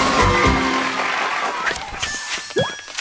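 Cheerful game music plays a short victory tune.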